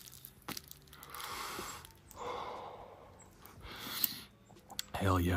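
A young man exhales smoke in long breathy puffs.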